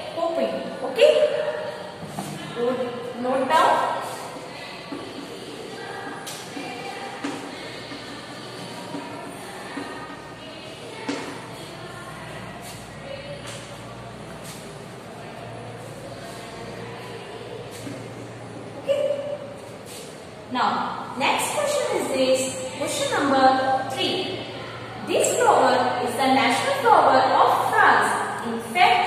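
A young woman speaks clearly to a class through a microphone in an echoing room.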